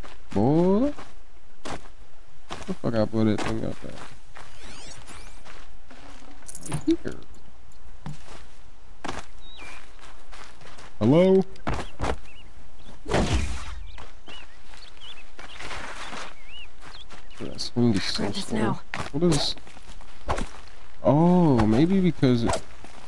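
Footsteps rustle through grass and over rock.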